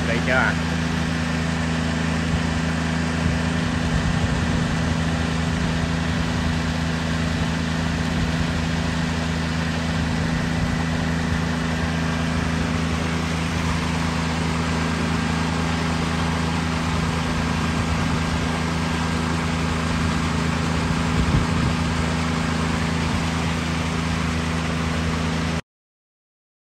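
Paddlewheel aerators churn and splash water steadily.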